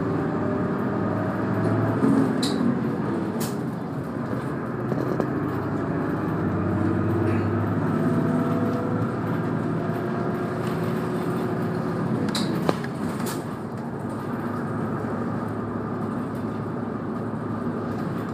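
Tyres roll along the road.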